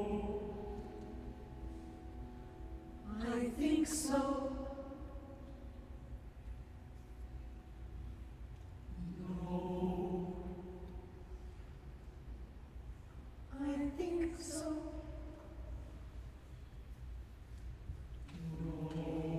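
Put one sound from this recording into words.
A mixed choir sings slowly in a large echoing hall, with phrases swelling and fading.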